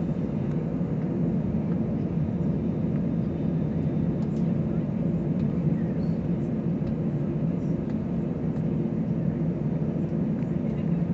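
Airliner jet engines drone steadily, heard from inside the cabin.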